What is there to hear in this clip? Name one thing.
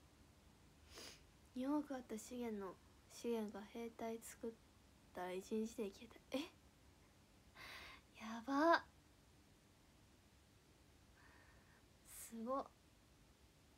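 A young woman speaks casually and close to a microphone, with pauses.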